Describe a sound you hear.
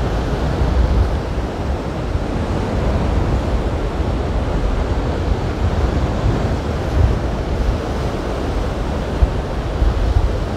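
Wind blows hard outdoors.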